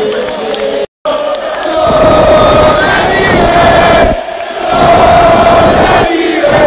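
A huge stadium crowd chants and sings loudly, close by and distorted.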